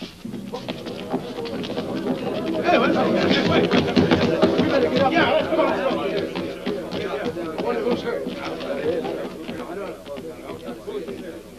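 A crowd of men shouts and clamours.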